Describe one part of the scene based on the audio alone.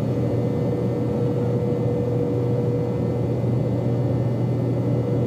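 A jet engine roars steadily, heard from inside an aircraft cabin.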